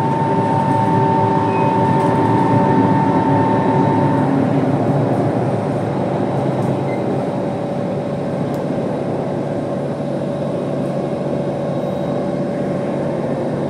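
A subway train rumbles and whines steadily along the track.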